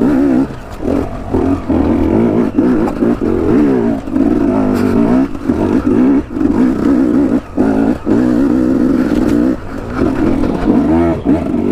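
A dirt bike engine revs hard and rises and falls in pitch up close.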